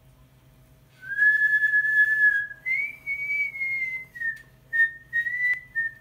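A man plays a few held notes on a whistle up close.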